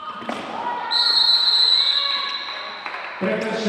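A referee blows a whistle in a large echoing hall.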